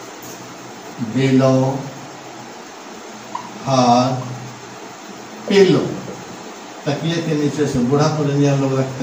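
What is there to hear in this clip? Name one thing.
An elderly man speaks slowly and calmly, in short phrases, close by.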